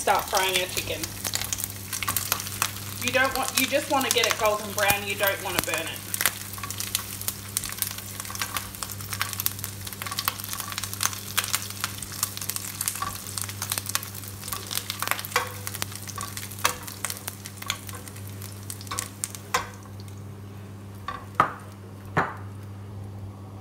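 A spatula scrapes and pushes food around a frying pan.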